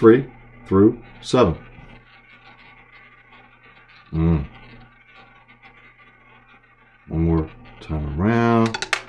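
A roulette ball rolls and whirs around a spinning wheel.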